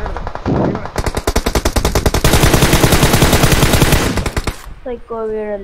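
Rapid bursts of automatic rifle fire crack close by.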